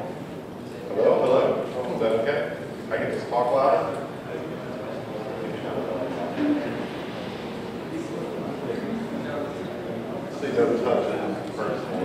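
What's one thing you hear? A man speaks into a microphone over loudspeakers in a large room.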